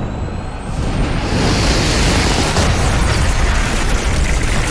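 A huge fiery orb bursts with a roaring explosion.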